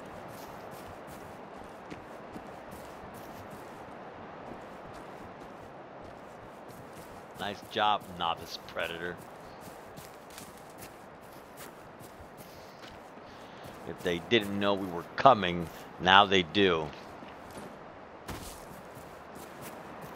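Footsteps tread steadily over soft forest ground.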